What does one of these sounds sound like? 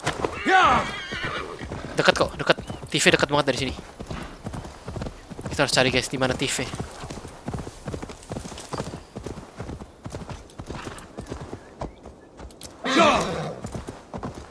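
Horse hooves thud steadily on the ground.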